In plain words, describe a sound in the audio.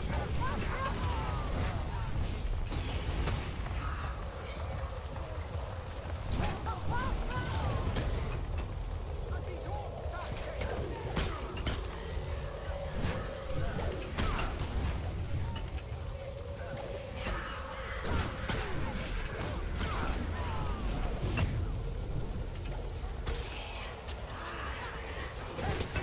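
Sharp blasts and impacts burst out again and again.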